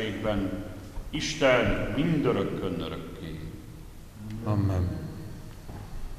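A man chants in a slow, sung voice through a microphone in a large echoing hall.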